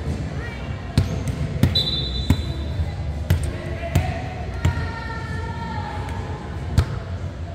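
A volleyball is bumped and slapped back and forth in a large echoing gym.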